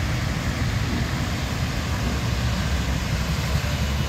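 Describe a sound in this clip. A car drives through water on a flooded road.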